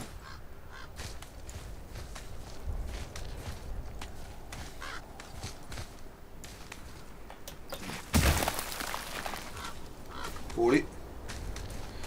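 Hands grip and scrape against rock in quick, scattered knocks.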